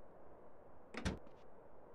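A truck door clicks open.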